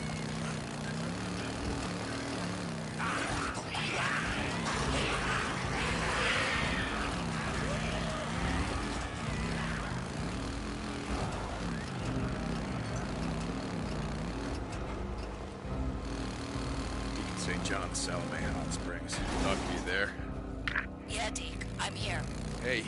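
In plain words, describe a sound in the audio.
A motorcycle engine rumbles steadily, rising and falling as it revs.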